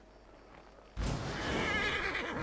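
A magical spell whooshes and crackles.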